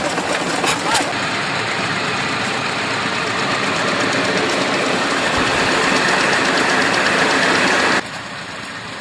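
A threshing machine's blower roars loudly and steadily.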